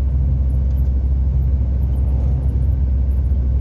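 An oncoming truck rushes past.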